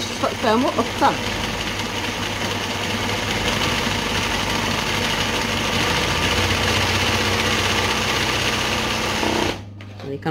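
A sewing machine stitches embroidery through fabric.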